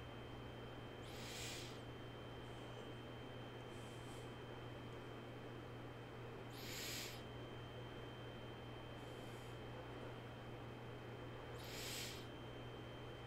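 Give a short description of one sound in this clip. A man breathes in slowly and deeply, close to a microphone.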